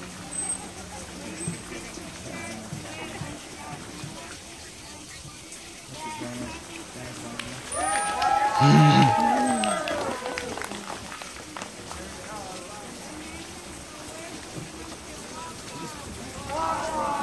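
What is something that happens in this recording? Several people in the water chatter and exclaim outdoors.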